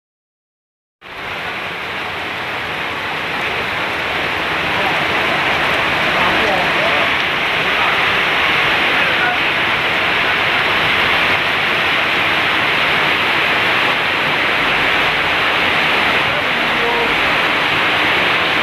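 Heavy rain pours down steadily outdoors.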